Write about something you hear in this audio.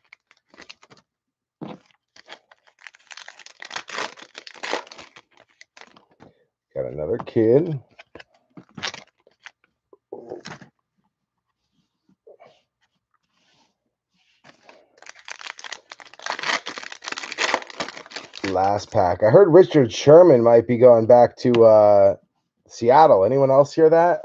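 Trading cards rustle and click as they are shuffled and sorted.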